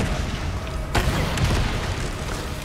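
A gunshot bangs sharply and echoes.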